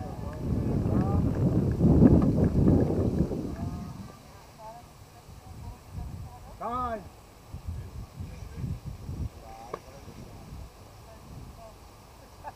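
Men call out to each other across an open field in the distance.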